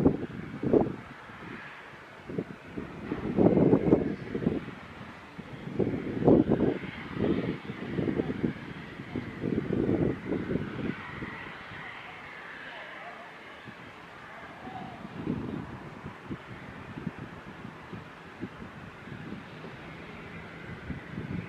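Water laps gently against a slipway.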